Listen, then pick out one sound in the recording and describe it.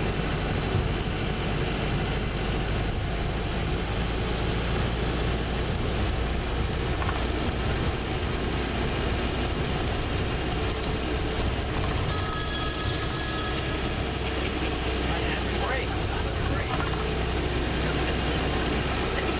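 Tyres roll steadily on tarmac.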